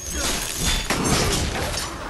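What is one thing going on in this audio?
An explosion bursts in a video game fight.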